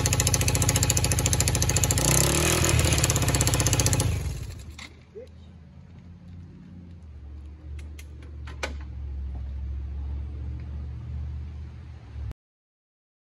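A small engine runs loudly, then settles into a low idle.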